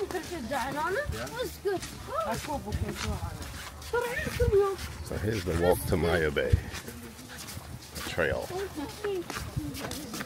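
Men and women talk nearby outdoors.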